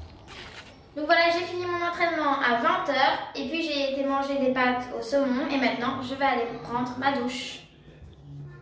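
A young girl talks close by, calmly and brightly.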